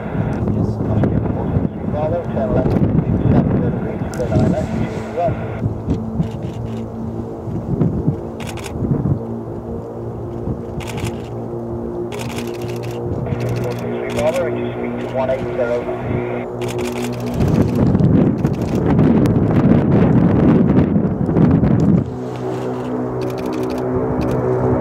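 Propeller engines drone steadily and grow louder as a large plane approaches and passes overhead.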